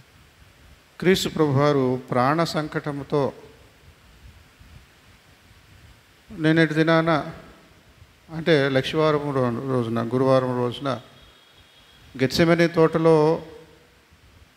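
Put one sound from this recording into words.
A middle-aged man speaks calmly into a microphone, with pauses, in an echoing hall.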